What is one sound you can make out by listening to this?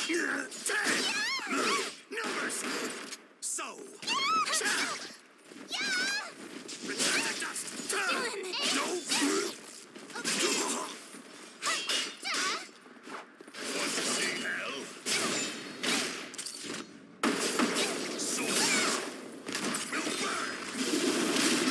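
Weapons clash and strike with sharp metallic hits.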